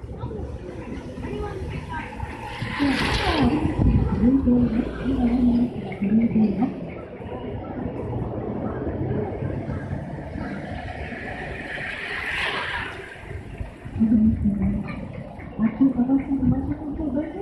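Traffic drives past on a nearby road.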